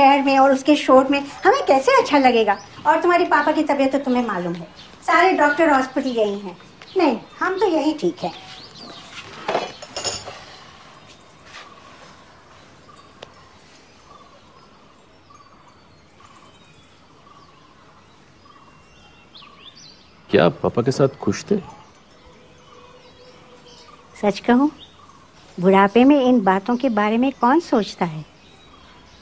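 An elderly woman speaks with animation nearby.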